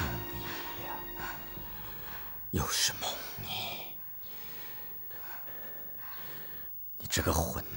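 A man speaks in a low, bitter voice.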